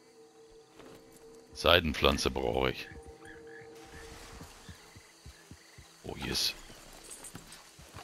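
A horse's hooves thud on grass.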